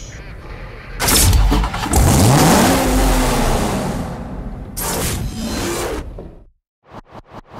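A sports car engine revs loudly and roars.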